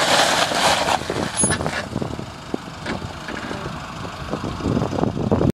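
Tyres crunch on wet gravel.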